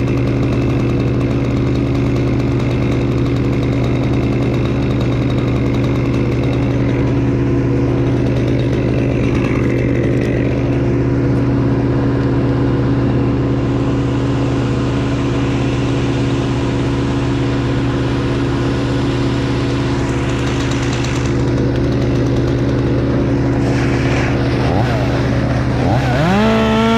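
A chainsaw engine idles steadily close by.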